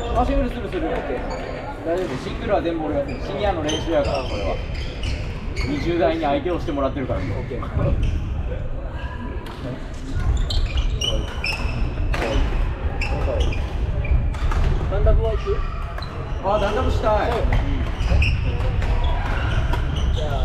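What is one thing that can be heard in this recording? Badminton shuttlecocks are struck with sharp pops around a large echoing hall.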